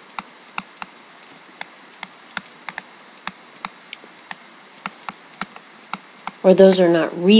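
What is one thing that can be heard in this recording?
A pen taps and clicks on a hard writing surface.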